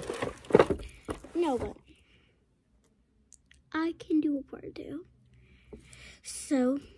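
A young girl talks with animation, close up.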